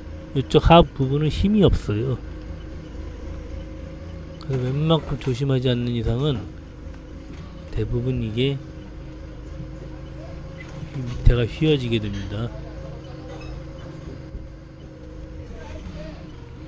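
A forklift engine idles with a steady low hum.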